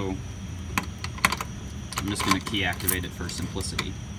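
Keys jingle on a ring.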